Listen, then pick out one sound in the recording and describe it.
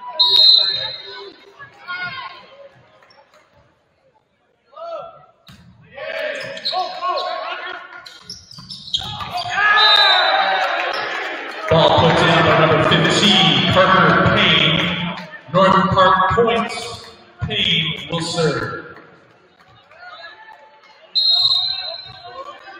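A referee's whistle blows sharply in an echoing gym.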